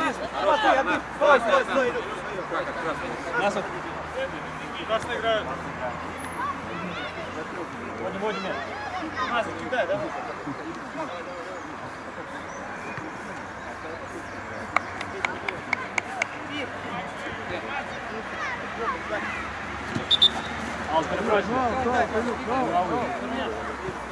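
Football players shout to each other across an open field outdoors.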